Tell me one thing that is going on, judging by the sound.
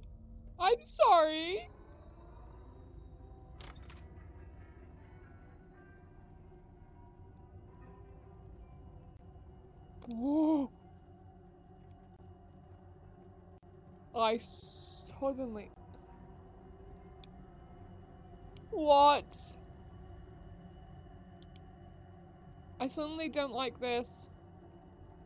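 A young woman exclaims and speaks animatedly into a headset microphone, in short bursts.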